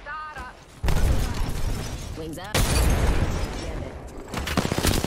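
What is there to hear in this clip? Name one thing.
Gunfire rattles loudly in rapid bursts.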